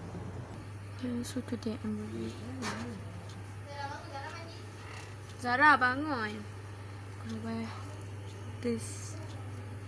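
A young woman speaks close by, casually and with animation.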